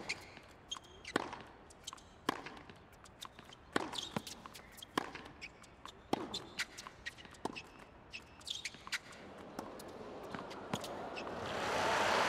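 A tennis ball is struck back and forth with sharp pops of a racket.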